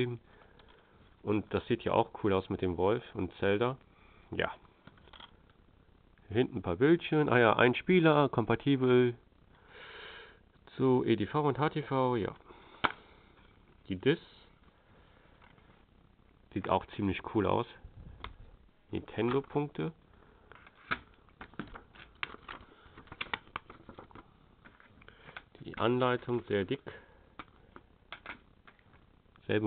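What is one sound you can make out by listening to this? Plastic game cases clack and rattle as hands handle them.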